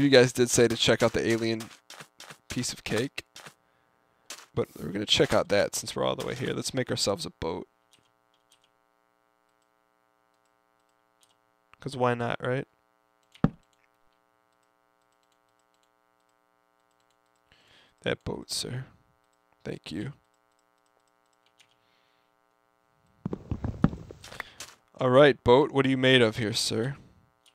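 A man talks with animation close to a microphone, pausing now and then.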